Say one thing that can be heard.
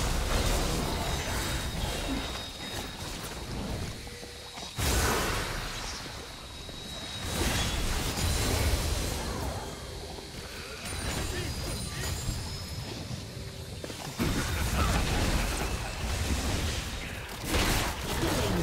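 Spell effects whoosh and crackle in a video game battle.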